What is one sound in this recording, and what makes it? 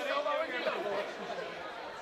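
A woman laughs nearby.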